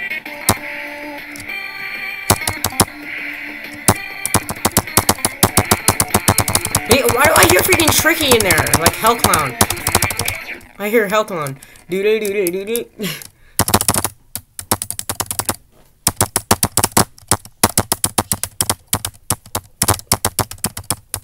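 Fast electronic game music plays with a pounding beat.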